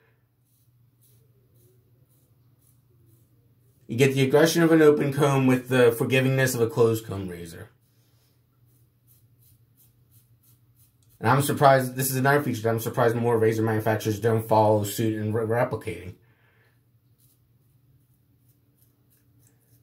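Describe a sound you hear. A razor scrapes across stubble.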